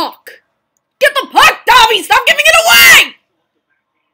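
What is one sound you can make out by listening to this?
A young woman shouts excitedly.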